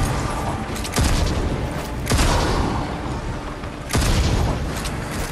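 Heavy blasts boom.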